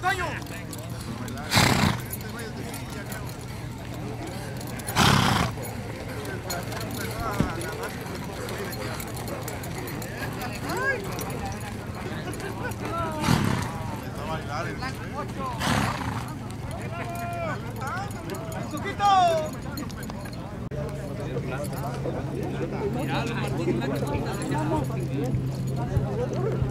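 Horses' hooves thud softly on dirt as they walk.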